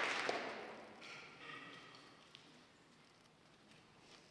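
A band plays soft, sustained notes in a large hall.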